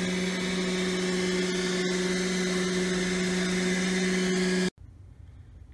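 A robot vacuum hums and whirs steadily as it moves across carpet.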